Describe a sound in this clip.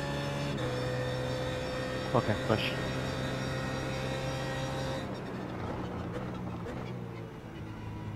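A race car engine roars at high speed, then drops in pitch as the car slows.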